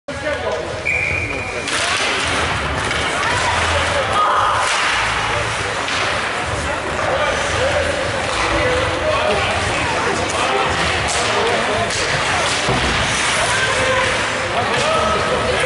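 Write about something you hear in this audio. Ice hockey skates scrape and carve on ice.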